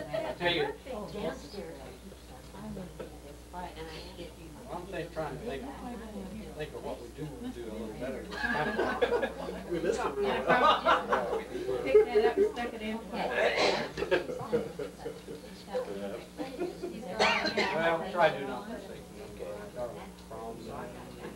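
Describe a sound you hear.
Several middle-aged men talk and chat casually nearby.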